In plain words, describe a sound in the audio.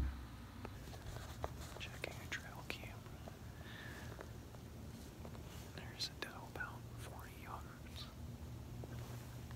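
A man speaks quietly close by.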